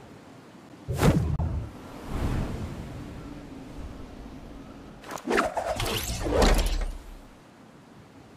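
Wind rushes loudly past a falling figure.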